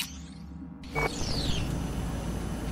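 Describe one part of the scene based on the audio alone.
A short electronic whoosh sweeps downward.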